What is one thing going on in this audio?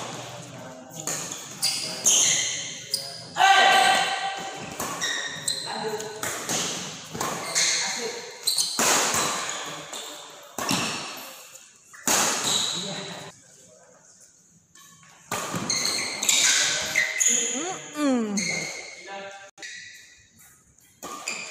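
Badminton rackets hit a shuttlecock back and forth in a large echoing hall.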